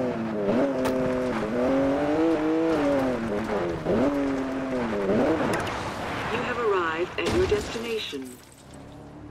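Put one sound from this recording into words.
A car engine revs loudly, rising and falling in pitch.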